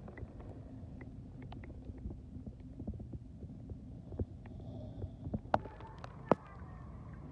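Water gurgles and clicks underwater.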